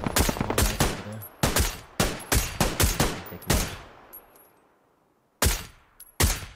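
Rifle shots crack in quick bursts, echoing away outdoors.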